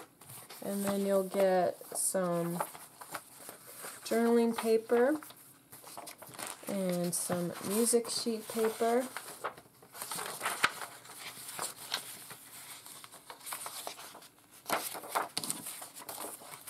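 Sheets of paper rustle and shuffle as they are handled.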